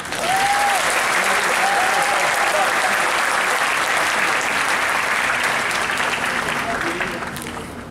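People in the audience cheer and whoop.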